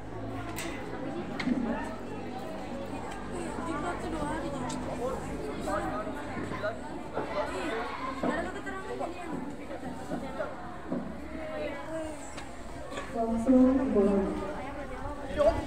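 Young people chatter nearby.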